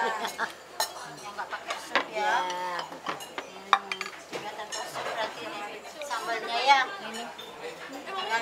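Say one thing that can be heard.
Plates clink and knock against a table.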